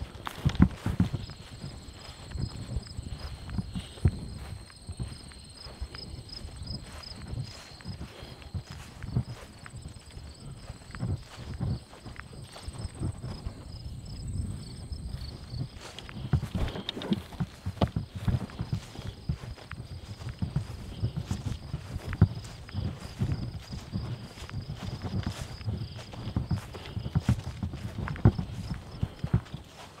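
A vehicle rumbles and bumps quickly over rough grass.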